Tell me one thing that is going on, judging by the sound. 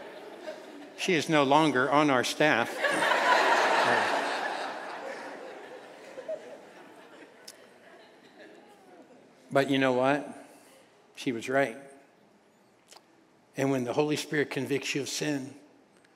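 An older man speaks to an audience through a microphone, pausing often.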